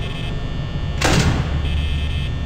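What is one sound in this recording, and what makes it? A heavy metal door slams shut.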